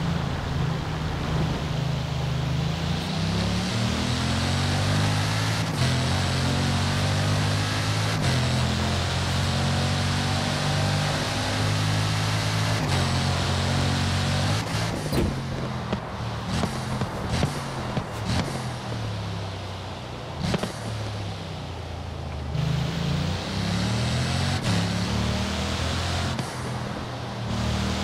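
A powerful car engine roars, rising in pitch through quick gear changes.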